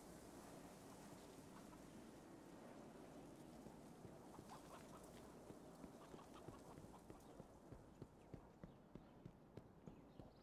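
Footsteps tap quickly on stone paving.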